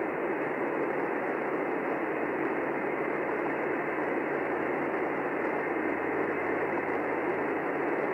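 A small loudspeaker plays a steady, muffled hissing noise.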